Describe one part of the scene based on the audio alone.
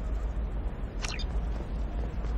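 A short electronic chirp sounds as a button is pressed.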